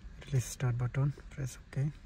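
A finger taps a touchscreen.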